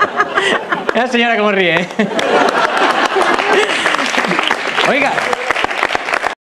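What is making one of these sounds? A crowd of men and women laughs.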